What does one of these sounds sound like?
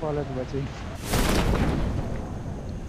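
A parachute snaps open with a sudden whoosh.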